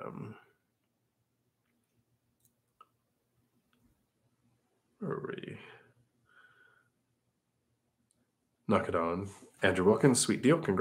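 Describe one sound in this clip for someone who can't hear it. A middle-aged man speaks calmly and close to a microphone, pausing between phrases.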